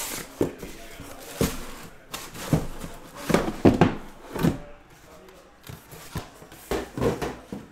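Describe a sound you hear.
Cardboard boxes knock and slide against each other.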